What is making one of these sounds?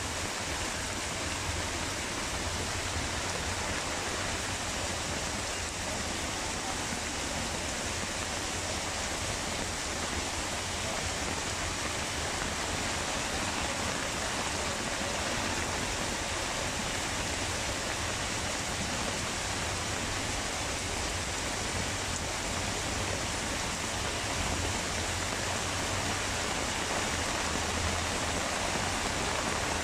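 Rain drums on a plastic sheet roof.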